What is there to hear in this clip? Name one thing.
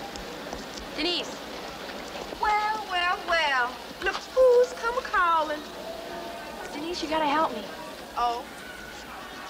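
Young women talk with animation nearby.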